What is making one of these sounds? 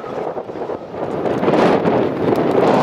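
Flags flap and snap in the wind.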